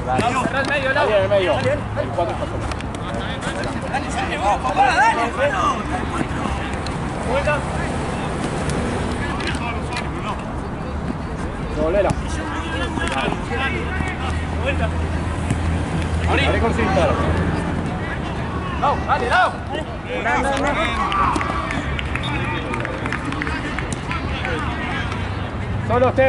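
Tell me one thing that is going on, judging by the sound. Young men shout to each other outdoors across a pitch.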